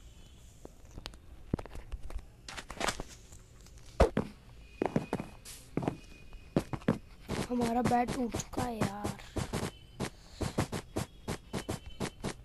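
Wool blocks are struck and broken with quick, repeated soft thuds.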